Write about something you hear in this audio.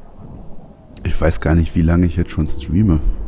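An older man speaks with animation close to a microphone.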